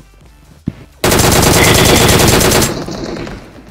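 Rapid gunfire rattles from an automatic rifle.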